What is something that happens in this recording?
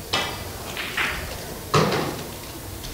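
Billiard balls clack against each other.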